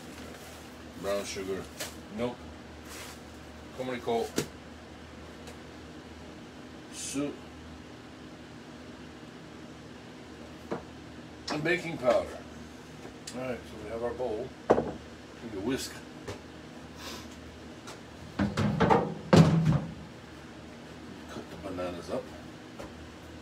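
A middle-aged man talks casually, close by.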